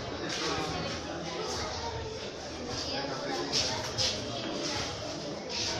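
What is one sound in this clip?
Children chatter and call out nearby in an echoing room.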